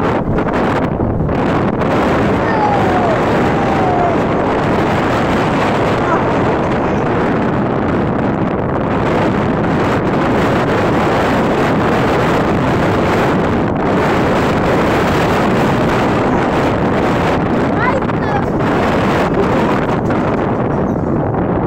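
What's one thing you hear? A sled rumbles and rattles fast along a metal track.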